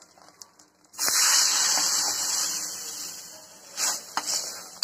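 Hot oil sizzles loudly as it is poured into a simmering curry.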